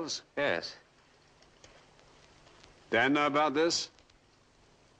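A young man answers calmly, close by.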